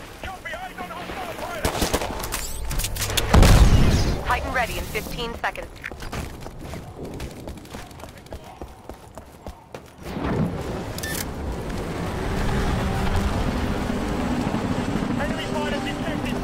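Distant explosions boom and rumble.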